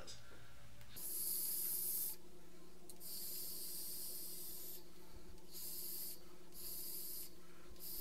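An electronic cigarette sizzles in repeated hissing bursts.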